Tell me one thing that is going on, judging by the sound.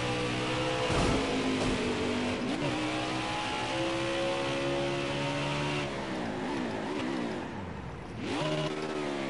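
A V8 stock car engine winds down through the gears as the car brakes.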